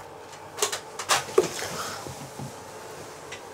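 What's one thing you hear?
A woman speaks quietly, close by.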